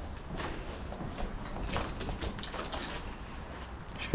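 Footsteps crunch on rubble and debris.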